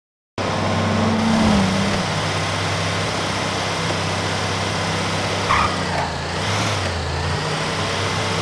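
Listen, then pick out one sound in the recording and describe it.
A heavy truck engine hums steadily as it drives along a road.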